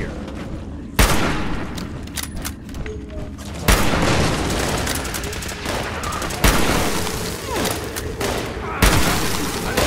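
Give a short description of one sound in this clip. A shotgun fires loud blasts, a few seconds apart.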